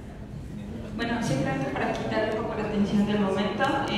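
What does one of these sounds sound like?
A young woman speaks into a microphone over loudspeakers in a large echoing hall.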